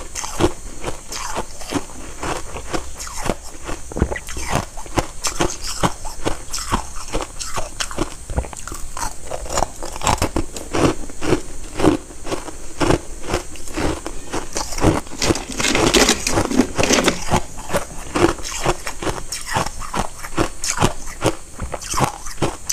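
Ice crunches loudly between teeth, close to a microphone.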